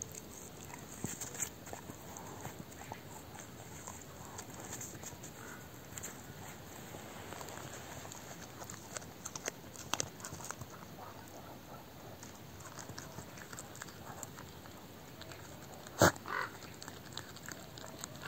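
A dog gnaws and crunches on a meaty bone close by.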